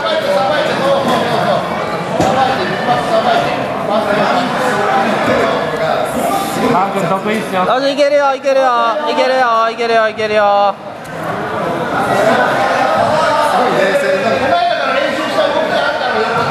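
Men and women shout and call out loudly in an echoing hall.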